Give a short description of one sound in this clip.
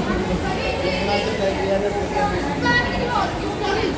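Young women chat in a group.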